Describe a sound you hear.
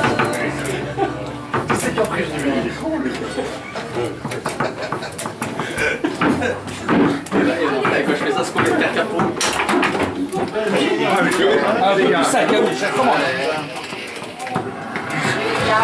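A crowd of people chatters nearby in a busy room.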